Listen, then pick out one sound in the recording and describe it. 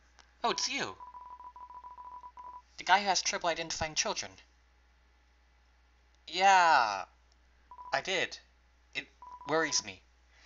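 Rapid, high electronic beeps tick as game text types out.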